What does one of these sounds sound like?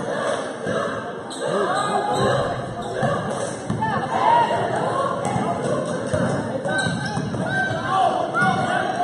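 A crowd of spectators chatters in a large echoing gym.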